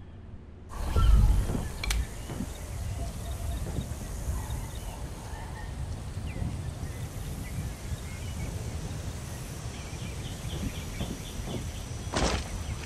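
Footsteps tread steadily on dirt and grass.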